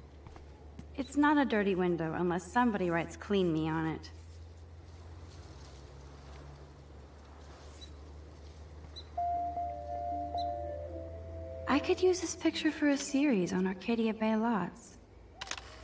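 A young woman speaks calmly to herself, close by.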